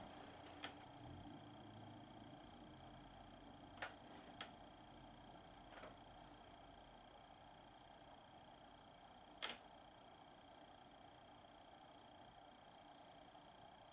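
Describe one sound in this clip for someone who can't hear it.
Small game pieces tap and click on a board.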